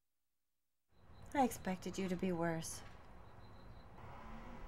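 A woman speaks calmly close to a microphone.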